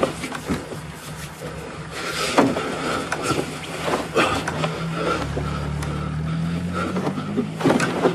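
Heavy fabric rustles and flaps as a coat is shaken out.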